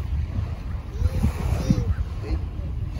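A young child calls out in a high voice a short way off.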